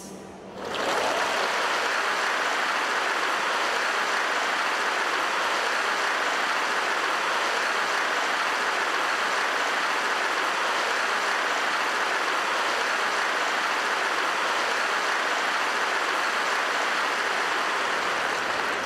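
A large crowd cheers and applauds loudly in a big arena.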